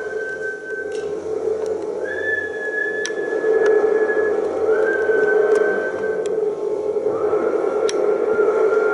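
A man taps a frame drum now and then.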